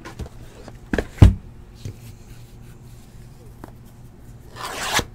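A cardboard box is picked up and rustles.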